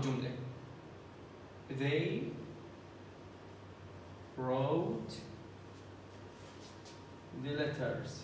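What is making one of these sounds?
A man speaks slowly and calmly in short phrases.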